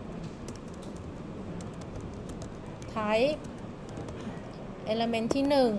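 Keys on a keyboard click in quick bursts of typing.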